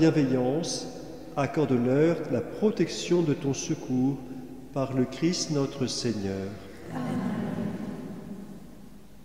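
A man sings a chant through a microphone in a large echoing hall.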